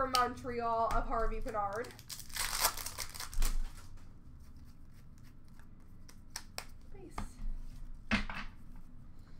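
Plastic card cases click and rustle as they are handled close by.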